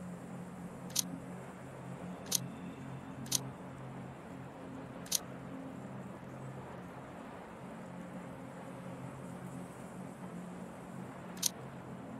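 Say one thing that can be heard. Short sharp clicks sound now and then.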